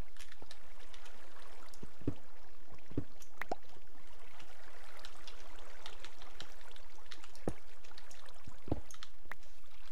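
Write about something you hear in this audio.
A pickaxe knocks against stone blocks.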